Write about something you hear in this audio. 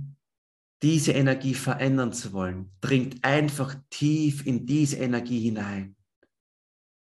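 A young man speaks calmly and clearly into a close microphone, as if on an online call.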